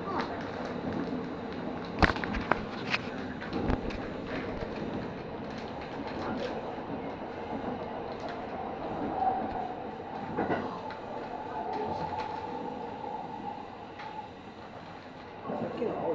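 Train wheels clatter and click over rail joints.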